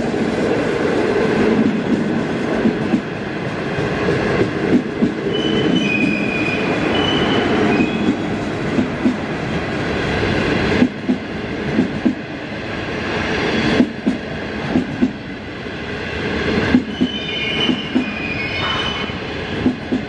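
A passenger train rumbles past close by, its wheels clattering rhythmically over rail joints.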